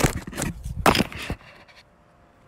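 Clothing rustles and brushes loudly against a microphone up close.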